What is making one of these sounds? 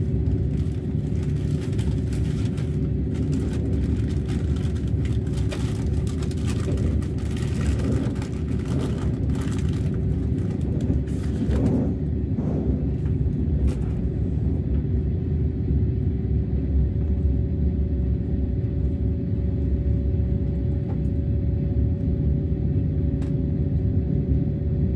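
A train rumbles and hums steadily along the tracks.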